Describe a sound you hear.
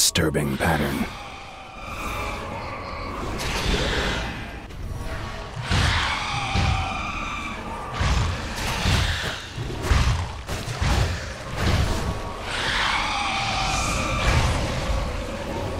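Magic blasts crackle and boom in a fight.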